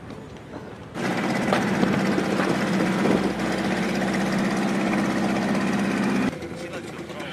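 A motorboat engine drones loudly as the boat speeds across the water.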